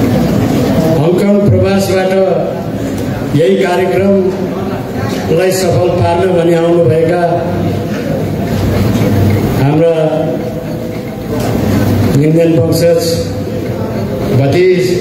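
A man speaks steadily into a microphone over loudspeakers.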